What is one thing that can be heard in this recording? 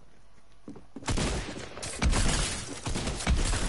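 Gunfire rattles in loud rapid bursts.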